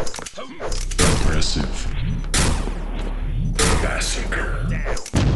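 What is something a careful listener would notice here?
An energy gun fires in loud, sharp bursts.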